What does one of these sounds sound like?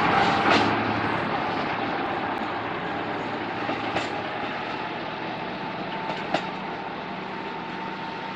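A diesel railcar approaches.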